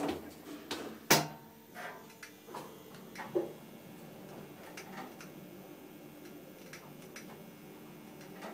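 A lift hums steadily as it travels.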